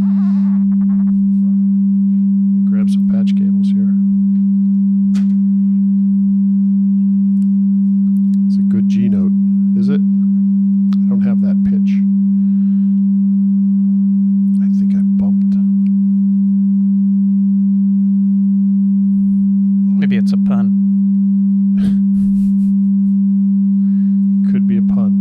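A steady low electronic tone drones without a break.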